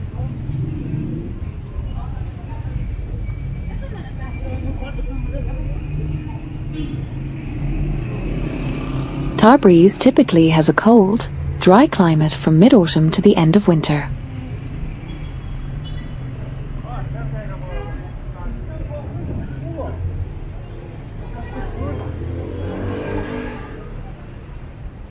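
Footsteps of passersby tap on the paving.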